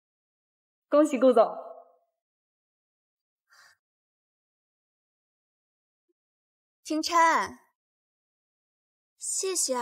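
Another young woman speaks brightly, up close.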